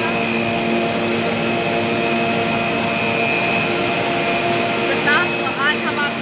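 A cable car cabin rolls along with a steady mechanical hum.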